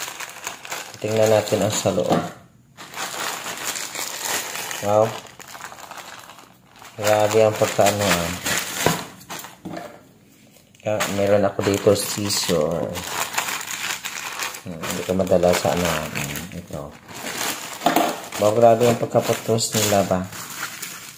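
A plastic mailing bag crinkles and rustles under handling.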